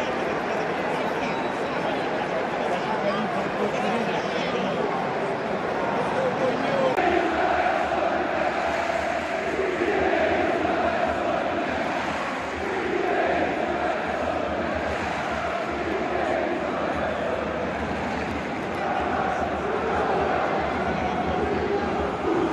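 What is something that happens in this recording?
A large stadium crowd chants and sings loudly all around, echoing in the open air.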